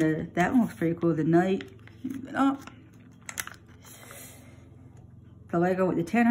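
A paper leaflet crinkles and rustles as it is turned over.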